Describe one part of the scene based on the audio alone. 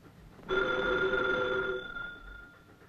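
A telephone rings loudly.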